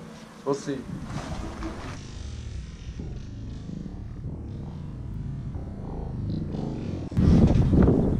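A motorcycle engine runs and revs.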